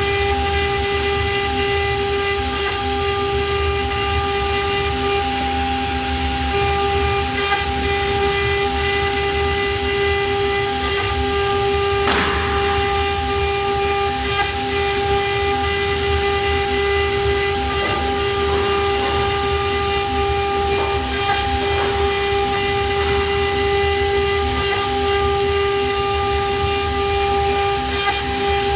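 A CNC router spindle whines at a high pitch.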